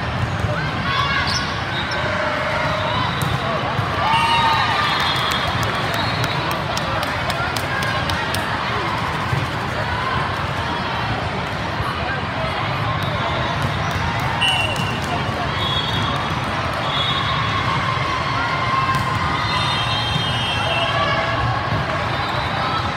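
Young women shout and cheer on a court.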